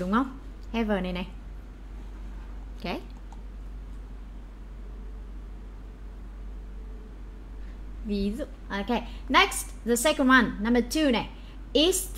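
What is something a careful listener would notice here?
A young woman speaks with animation into a close microphone, pausing between phrases.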